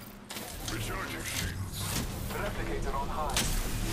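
A shield cell charges with an electric whine.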